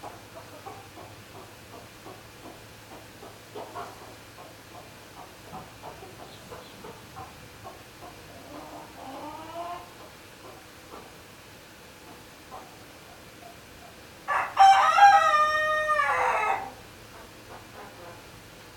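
A hen clucks softly and repeatedly.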